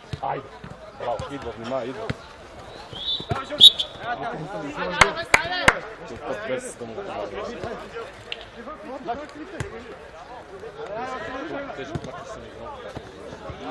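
A football thumps as it is kicked.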